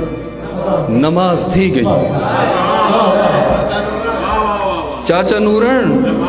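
A man recites expressively, in a drawn-out singing way, through a microphone.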